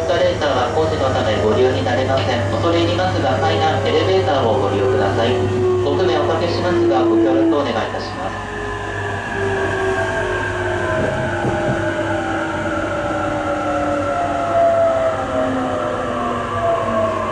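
The traction motors of an electric commuter train whine from inside a carriage at high speed, slowly falling in pitch.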